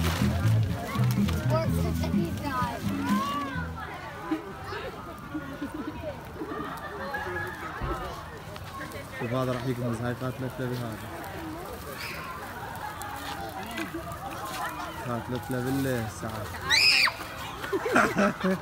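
A crowd of adults and children chatter and call out outdoors.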